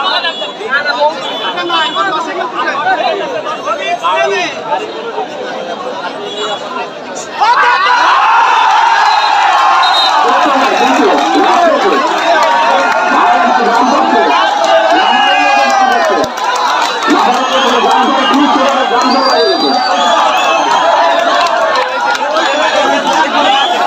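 A large outdoor crowd cheers and shouts loudly, growing louder.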